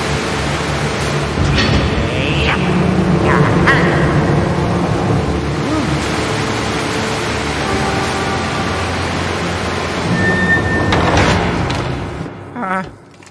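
Water gushes steadily from a pipe.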